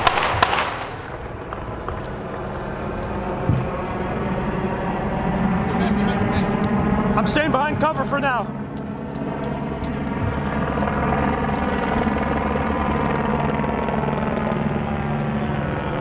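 Vehicle engines idle with a steady low hum.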